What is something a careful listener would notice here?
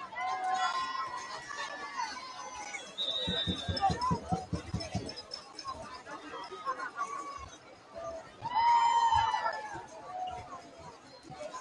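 A crowd cheers and shouts in an open-air stadium.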